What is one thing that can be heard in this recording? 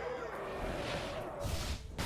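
A magical spell effect whooshes and sparkles.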